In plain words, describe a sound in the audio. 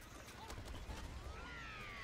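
A cartoonish explosion booms.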